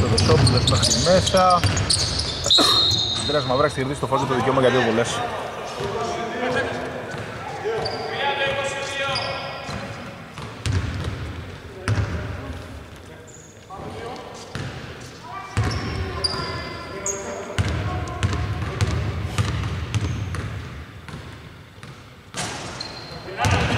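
A basketball bounces on the court with hard thuds.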